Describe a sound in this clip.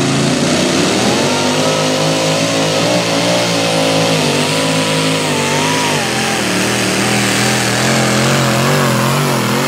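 Tyres grind and spin on dirt.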